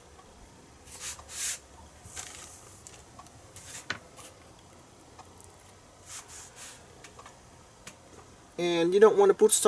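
Hands handle a wire with soft rustles and taps on cardboard.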